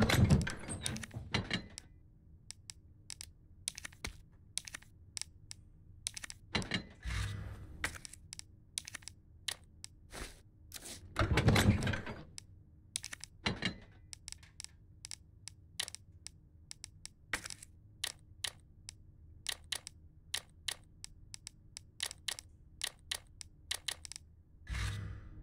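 Short menu clicks tick again and again.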